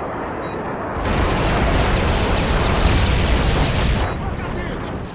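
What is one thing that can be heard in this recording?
An explosion booms and rumbles loudly.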